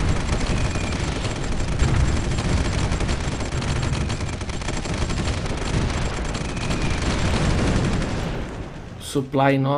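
Explosions boom and rumble in a deep, steady roar.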